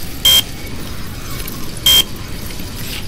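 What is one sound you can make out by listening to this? A card reader gives a sharp electronic beep.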